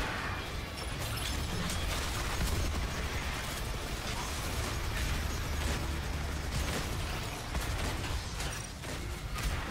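Rapid gunfire and energy blasts crackle loudly and without a break.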